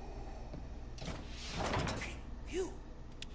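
A heavy metal door slides shut with a loud whoosh.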